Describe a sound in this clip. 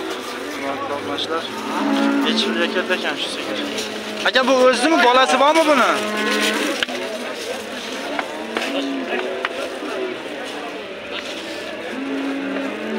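Men talk with animation nearby in an outdoor crowd.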